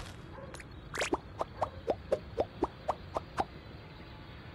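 Quick clicking ticks sound in a row as scores tally up.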